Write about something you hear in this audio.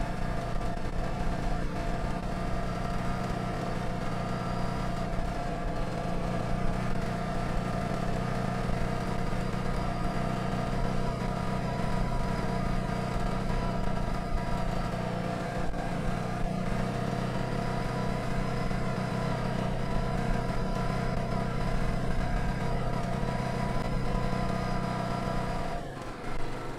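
Bicycle tyres roll over a bumpy dirt track.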